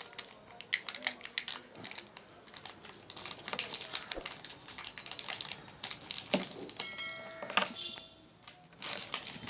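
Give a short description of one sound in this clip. Small plastic and metal parts click and tap.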